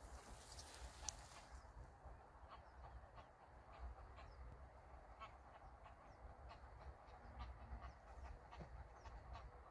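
Small wading birds give short, high peeps now and then.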